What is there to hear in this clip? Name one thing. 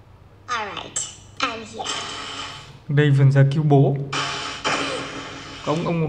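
Video game sound effects play from a tablet.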